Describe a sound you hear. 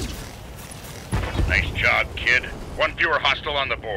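A vehicle explodes with a deep boom and rumble.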